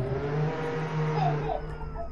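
A video game car engine hums as the car drives.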